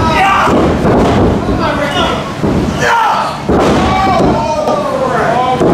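A wrestler's body slams onto a wrestling ring canvas with a heavy thud.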